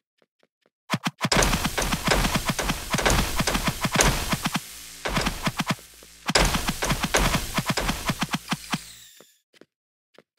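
Swords clash and strike in a loud, fast fight.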